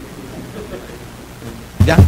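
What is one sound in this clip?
A middle-aged man laughs into a microphone.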